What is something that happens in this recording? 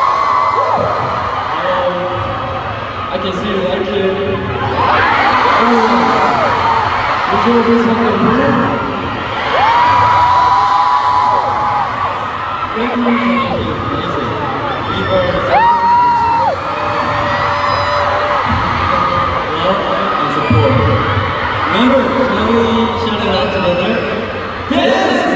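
A large crowd cheers and screams.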